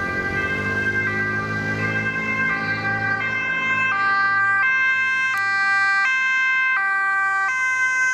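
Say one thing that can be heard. A two-tone siren wails, growing louder as it approaches.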